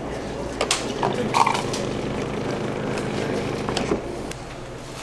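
A drink dispenser pours a drink in a steady stream.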